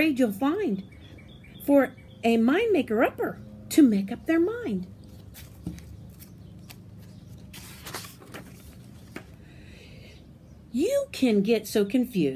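An older woman reads aloud expressively, close by.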